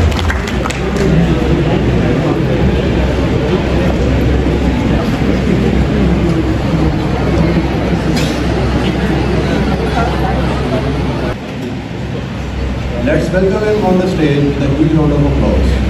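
A young man speaks into a microphone over a loudspeaker.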